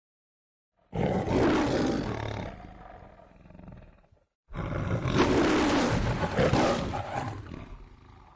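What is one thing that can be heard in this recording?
A lion roars loudly.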